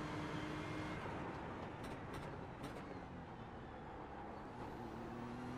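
A racing car engine drops in pitch as the car brakes and downshifts.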